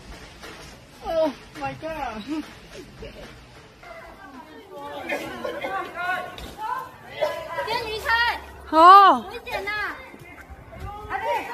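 A woman cries out in distress close by.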